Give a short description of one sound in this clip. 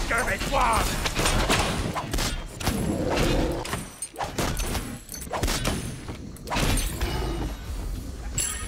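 Game combat sound effects of weapons striking clash.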